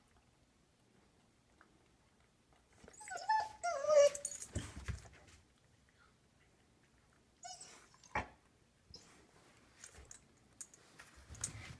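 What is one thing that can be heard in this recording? A cat crunches dry food.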